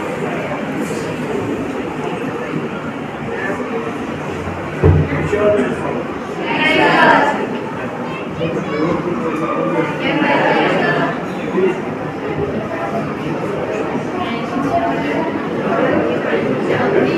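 A crowd of people murmurs and chatters in an echoing hall.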